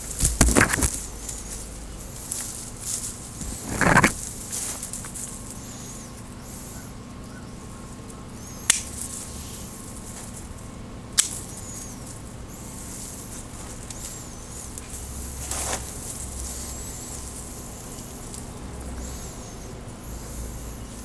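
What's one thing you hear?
Leafy branches rustle as they brush past.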